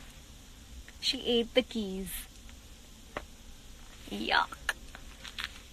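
A young woman speaks briefly and laughs softly, close to a microphone.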